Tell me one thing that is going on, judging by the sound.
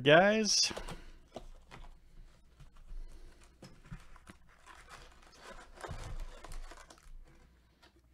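Plastic wrapping crinkles and tears as a box is opened.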